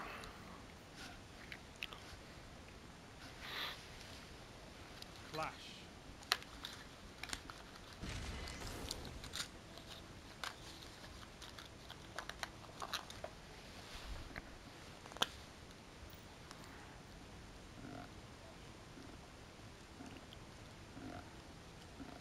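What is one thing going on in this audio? Soft menu clicks and chimes sound now and then.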